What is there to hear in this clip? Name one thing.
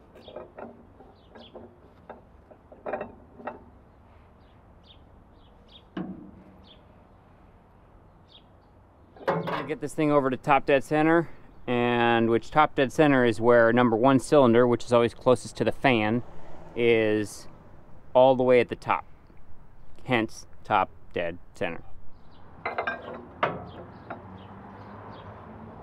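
A ratchet wrench clicks in short bursts.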